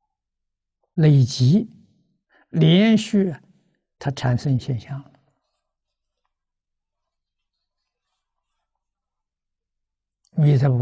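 An elderly man lectures with animation, close to a microphone.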